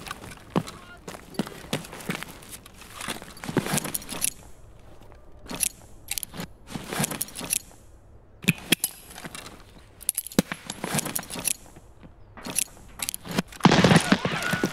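Footsteps thud and scuff on a hard floor.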